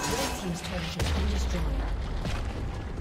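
A large stone tower explodes and crumbles with a deep rumbling boom.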